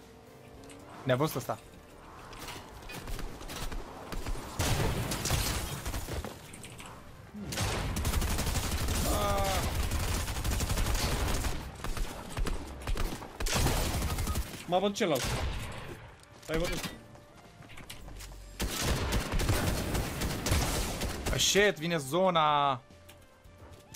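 A young man talks with animation into a headset microphone, close by.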